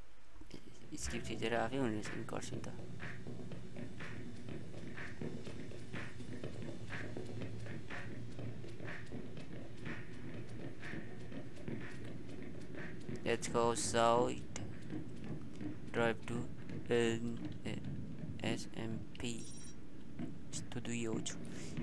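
Footsteps walk steadily on a hard floor and up stairs.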